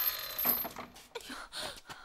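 Footsteps hurry across the floor.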